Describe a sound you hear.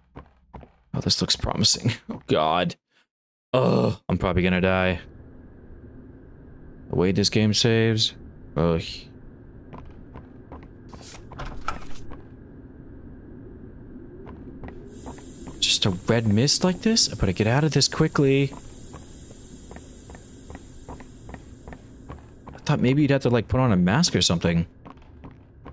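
A young man talks close to a microphone, with pauses.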